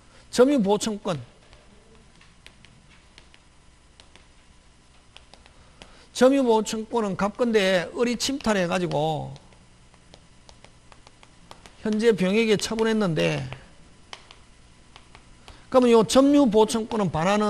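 A man lectures into a microphone with animation, in short bursts.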